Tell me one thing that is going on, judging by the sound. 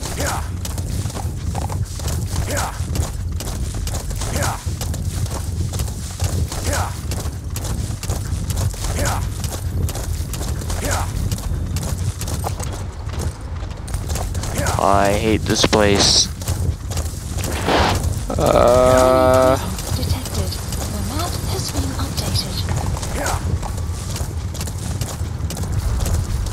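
Horse hooves gallop steadily over the ground.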